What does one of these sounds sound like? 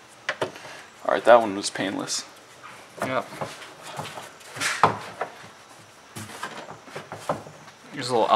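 Plastic engine parts knock and rattle as hands handle them.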